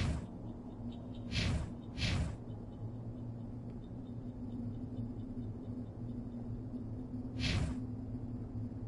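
Menu selection sounds swoosh briefly.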